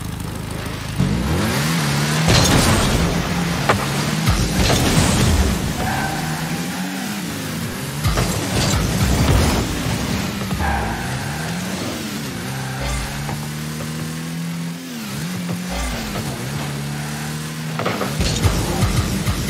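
A car engine revs up and down, rising and falling in pitch.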